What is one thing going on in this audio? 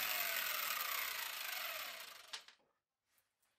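An angle grinder whirs loudly and winds down.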